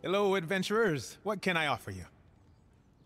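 A young man calls out a cheerful greeting.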